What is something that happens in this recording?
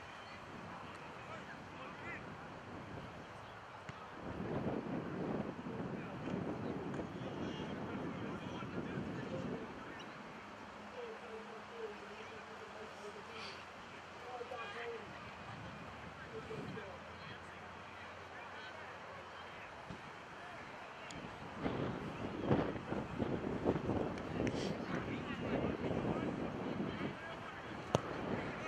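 Wind blows across an open outdoor field.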